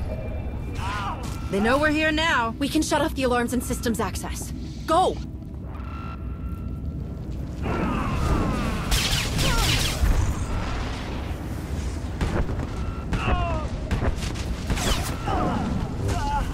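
Energy blasts crackle and burst in quick bursts.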